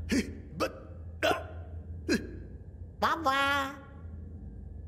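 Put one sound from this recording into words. A cartoon creature squeals in short high bursts.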